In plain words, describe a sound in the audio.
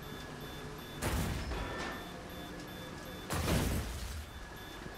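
Electricity crackles and bursts in loud, sharp blasts.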